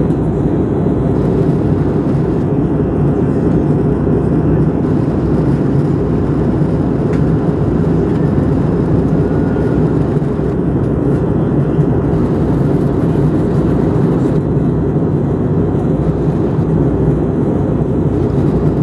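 A jet airliner's engines roar steadily from inside the cabin.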